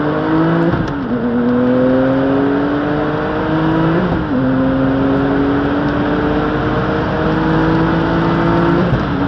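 Tyres hum on the track.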